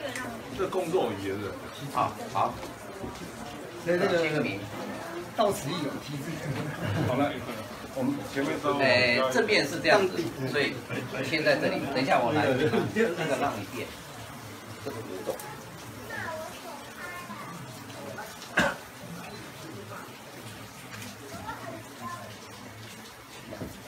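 Middle-aged men talk nearby, their voices overlapping.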